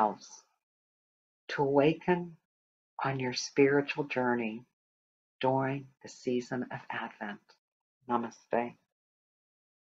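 A woman speaks warmly and calmly into a microphone, heard as over an online call.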